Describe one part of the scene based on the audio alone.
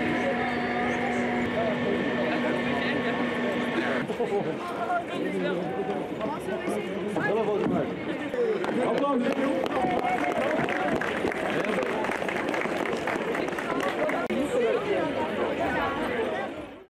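A large crowd chatters and calls out outdoors.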